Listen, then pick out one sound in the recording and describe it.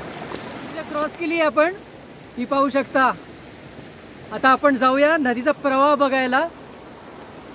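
A man speaks up close in a lively voice.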